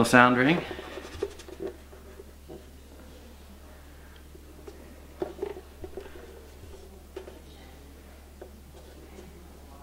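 Hands bump and rub against a guitar body.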